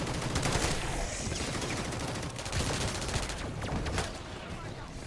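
Rapid gunfire crackles and bursts.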